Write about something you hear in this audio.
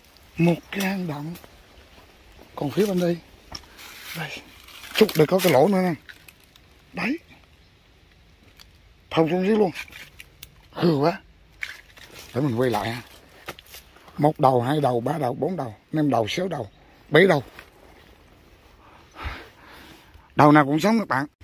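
A man speaks calmly close by, in short phrases.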